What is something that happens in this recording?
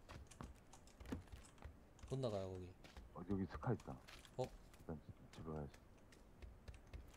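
Footsteps thud on a wooden floor and stairs.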